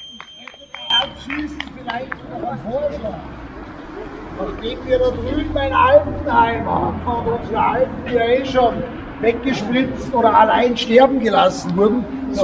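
A group of men and women talk outdoors at a distance.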